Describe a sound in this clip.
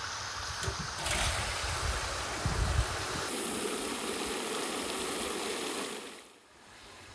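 Water sprays from a hose nozzle into a metal pot.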